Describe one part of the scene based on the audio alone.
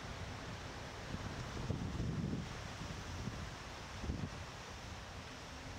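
Wind rushes and buffets against the microphone.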